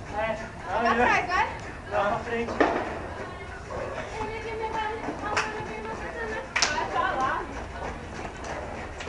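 Young people talk and call out nearby.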